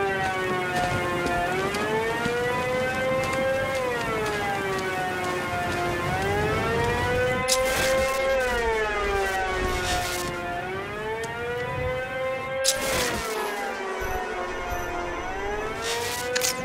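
A siren wails steadily nearby, rising and falling.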